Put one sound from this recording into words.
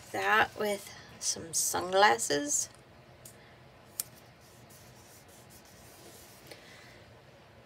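Fingers rub and press a sticker onto paper.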